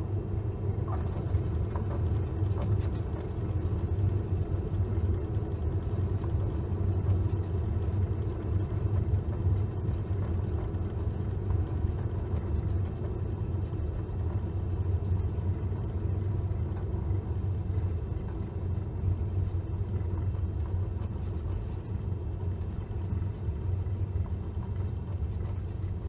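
Tyres rumble over a runway.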